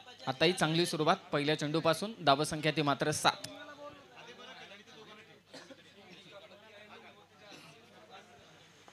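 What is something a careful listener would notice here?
A crowd of men chatters in the distance outdoors.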